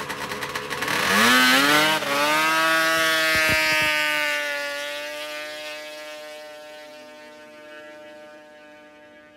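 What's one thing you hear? A snowmobile engine roars loudly as it speeds away and fades into the distance.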